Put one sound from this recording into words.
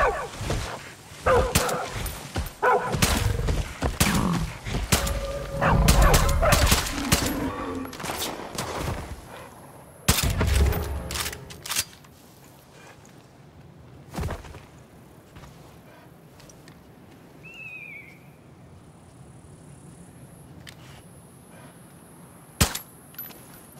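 Revolver shots crack loudly, one after another.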